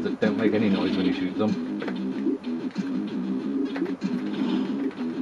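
Bleepy electronic game music plays a quick, bouncy tune.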